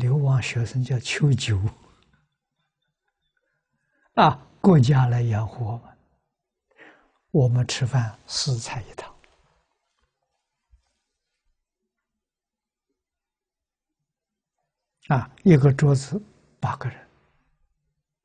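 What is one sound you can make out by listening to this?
An elderly man speaks calmly and warmly into a close microphone, in short phrases with long pauses.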